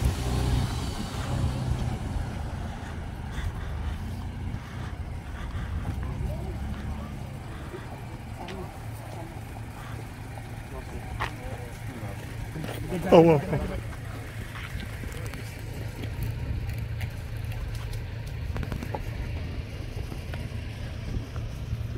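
Car engines idle nearby with a low, steady rumble.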